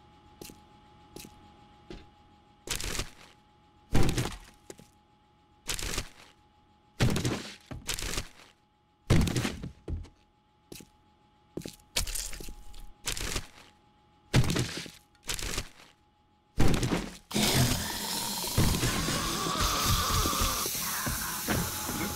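A torch flame crackles steadily.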